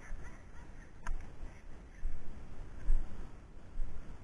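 A dog runs through tall dry grass.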